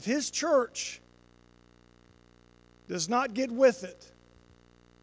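A man speaks with animation into a microphone, heard through loudspeakers in a large room.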